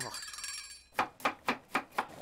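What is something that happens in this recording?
A knife chops quickly on a cutting board.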